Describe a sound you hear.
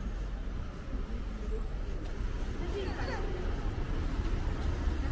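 Young children chatter nearby outdoors.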